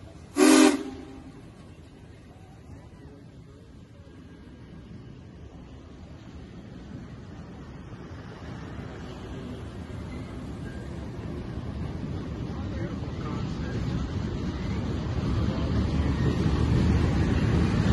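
A train rumbles and clatters across a steel bridge, growing louder.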